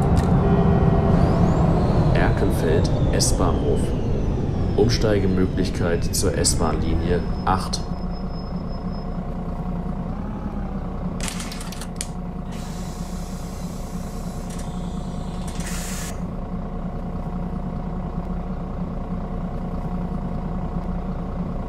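A bus engine rumbles as the bus drives, then settles to a low idle.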